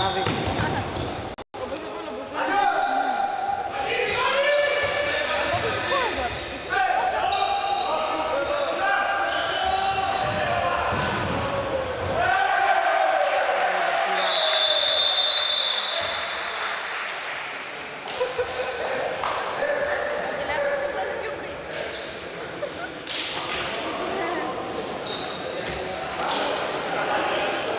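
Young men shout to each other across a large hall.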